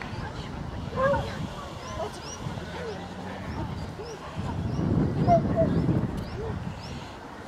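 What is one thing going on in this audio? A woman talks encouragingly to a dog, close by outdoors.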